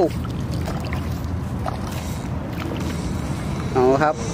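A fish splashes and thrashes in the water.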